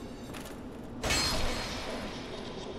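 A sword strikes flesh with a sharp slash.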